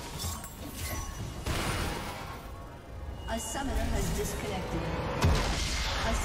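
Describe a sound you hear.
Game spell effects crackle and burst in a fight.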